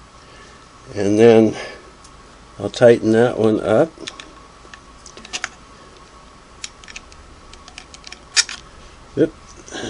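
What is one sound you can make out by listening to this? A screwdriver clicks and scrapes against a metal screw.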